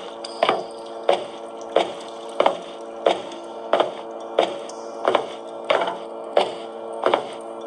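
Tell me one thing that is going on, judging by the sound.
A tablet game plays a steady pulsing electronic beat.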